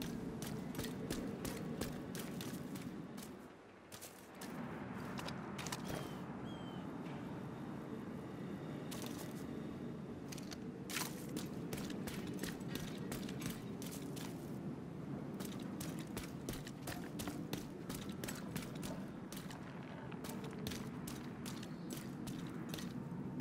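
Footsteps tread on wet ground.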